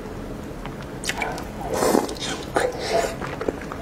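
A young woman bites and chews food loudly close to a microphone.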